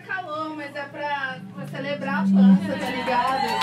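A man shouts into a microphone over loudspeakers.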